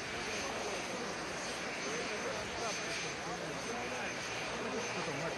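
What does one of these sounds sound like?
Several men talk over each other close by, outdoors.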